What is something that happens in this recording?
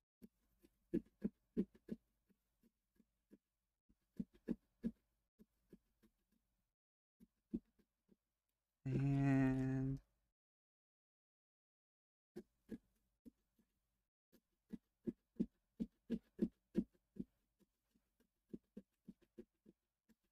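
A small knife cuts and scrapes through pumpkin flesh in short, quick strokes.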